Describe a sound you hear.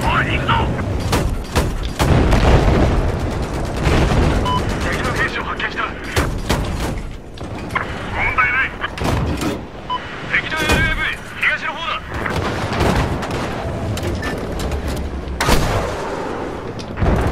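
Heavy guns fire in sharp, repeated blasts.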